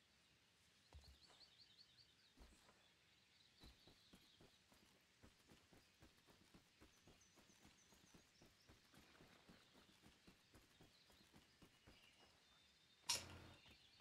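Footsteps patter quickly on wooden boards.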